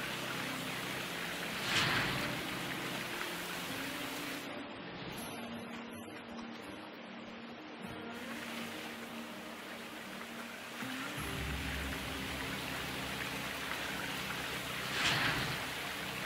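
Dirt and gravel pour from a bucket into a rattling sluice.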